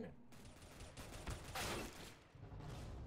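A pistol fires sharp shots.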